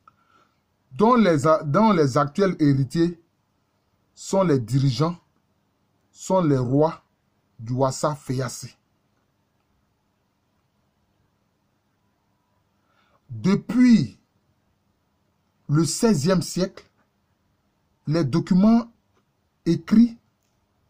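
A middle-aged man speaks calmly in short phrases with pauses, close to a microphone, as over an online call.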